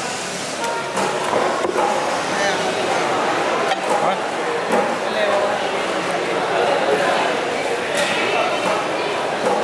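A knife taps against a wooden block.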